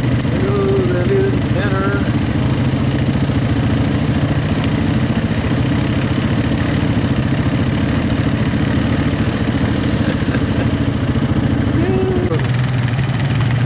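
An engine rumbles steadily close by.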